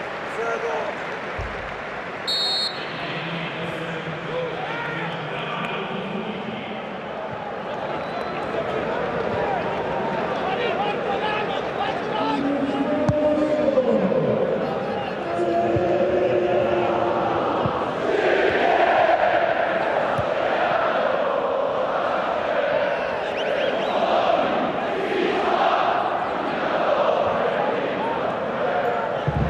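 A large crowd cheers and chants in a stadium.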